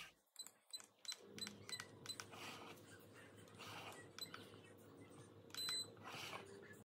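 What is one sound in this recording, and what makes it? An electric kettle beeps several times as its buttons are pressed.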